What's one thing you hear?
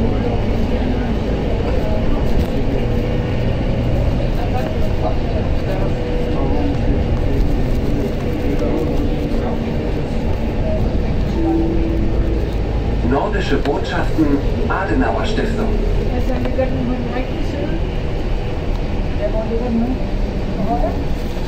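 Cars and trucks pass by on the road.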